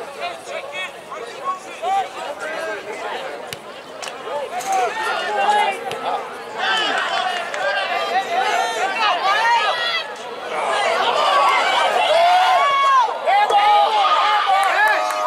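A crowd of spectators cheers and shouts outdoors, growing louder.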